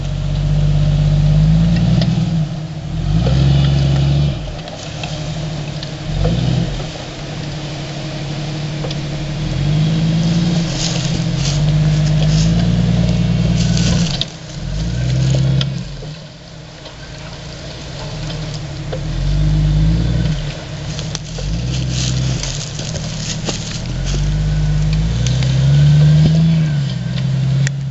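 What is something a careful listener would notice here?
Tyres crunch and scrape over rocks.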